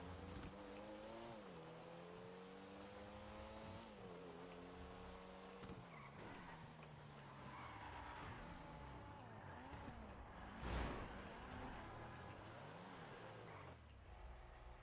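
A car engine revs and shifts gears as it drives.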